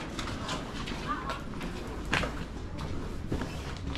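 A woman's footsteps tap on a stone floor nearby.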